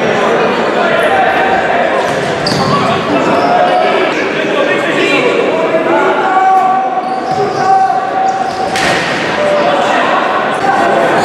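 A ball thuds on a hard floor.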